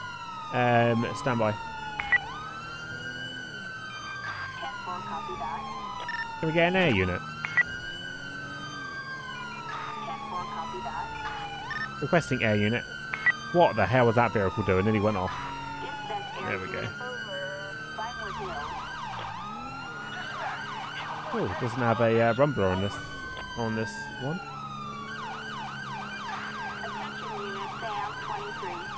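A police siren wails in a rising and falling cycle.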